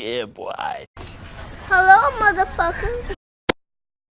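A young boy laughs loudly and giddily.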